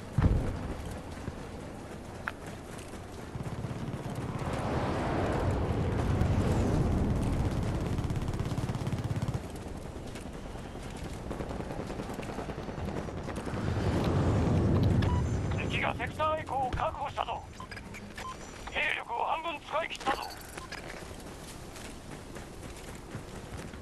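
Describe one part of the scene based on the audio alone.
A vehicle engine rumbles, swelling louder and dying down.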